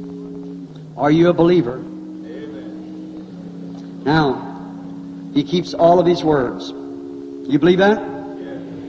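A man preaches forcefully through a microphone in short bursts.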